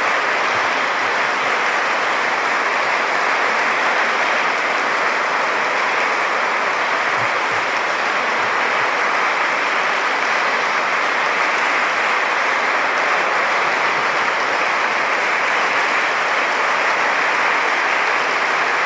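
A large crowd applauds steadily in an echoing hall.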